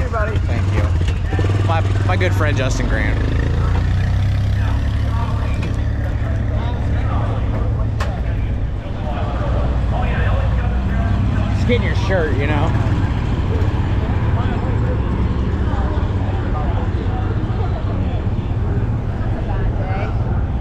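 An engine rumbles steadily nearby.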